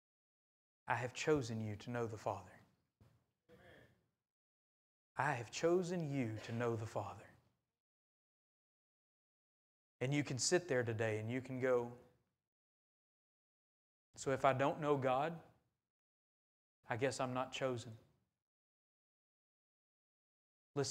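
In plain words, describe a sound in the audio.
A man speaks calmly through a microphone in a large echoing hall, with pauses between phrases.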